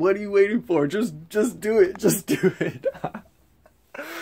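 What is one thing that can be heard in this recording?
A young man laughs loudly close by.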